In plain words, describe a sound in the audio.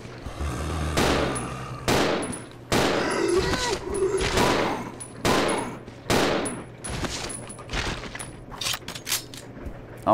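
Gunshots ring out again and again.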